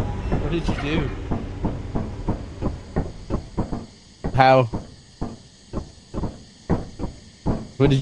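Footsteps clang on a metal walkway.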